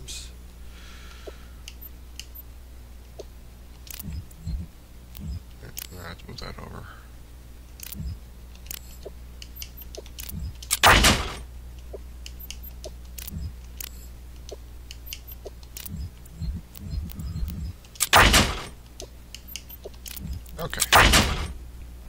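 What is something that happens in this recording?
Short electronic interface clicks sound now and then.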